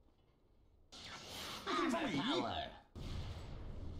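A magical beam whooshes loudly.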